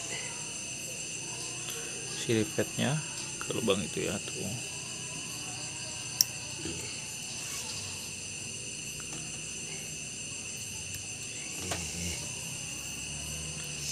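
A metal wrench clicks and scrapes against a small engine part.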